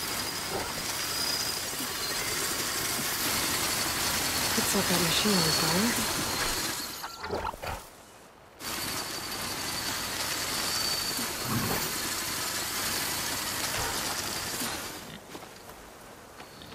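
Tall dry grass rustles.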